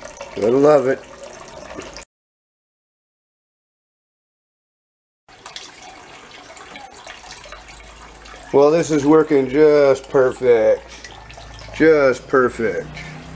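Water trickles from a hose into a bucket of water.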